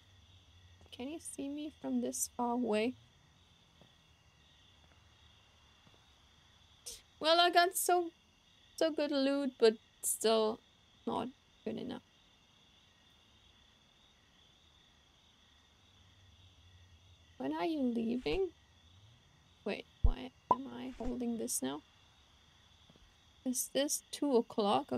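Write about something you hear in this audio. A young woman talks casually into a close microphone, in short bursts.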